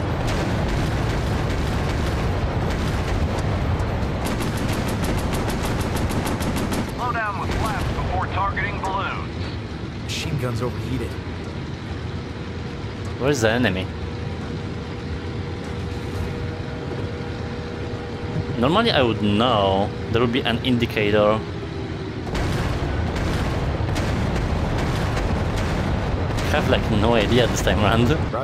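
A plane's propeller engine roars steadily.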